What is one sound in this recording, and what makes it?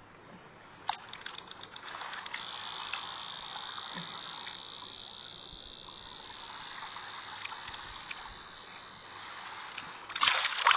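Water swirls and hums softly underwater.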